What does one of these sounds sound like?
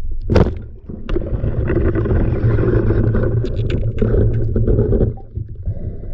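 Air bubbles burble and rise through the water.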